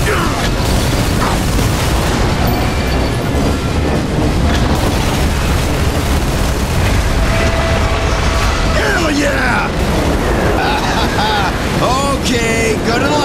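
A heavy rotary gun fires in a rapid, roaring stream.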